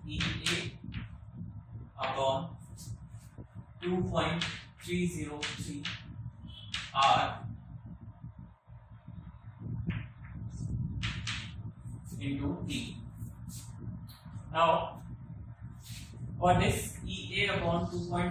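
A young man explains calmly, close to a microphone.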